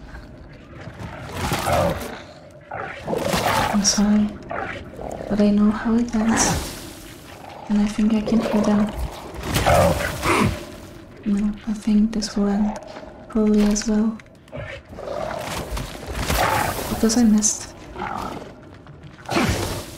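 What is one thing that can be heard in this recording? A monstrous creature shrieks and growls close by.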